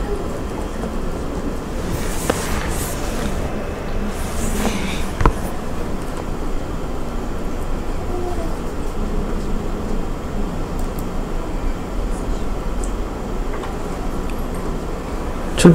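A man speaks calmly into a microphone, heard through a loudspeaker in a room.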